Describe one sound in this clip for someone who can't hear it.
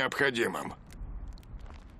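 An elderly man speaks calmly in a low voice.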